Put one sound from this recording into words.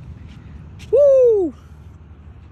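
A young woman shouts out with delight close by.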